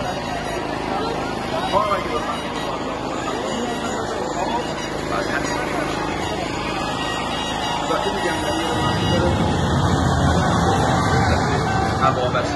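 A large crowd of men and women chants and calls out loudly, close by.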